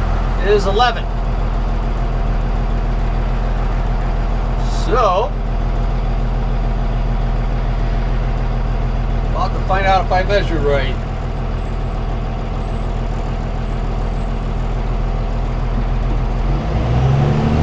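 A vehicle engine hums steadily from inside the cab.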